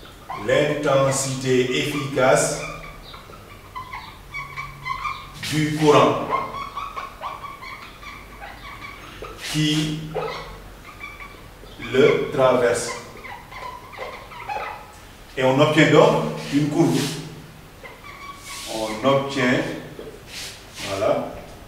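A man speaks calmly and clearly, as if explaining, close by.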